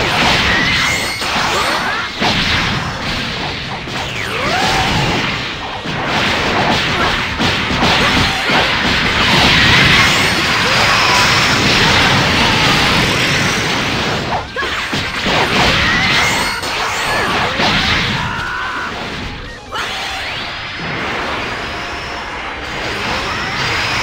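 Game characters rush through the air with whooshing sounds.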